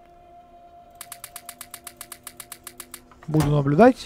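Quick clicks tick in rapid succession.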